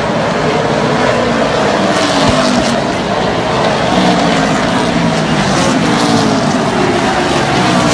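Race car engines roar loudly outdoors, rising and falling in pitch as cars pass.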